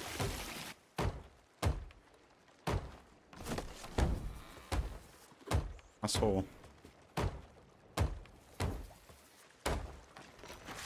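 A hammer knocks repeatedly on wooden planks.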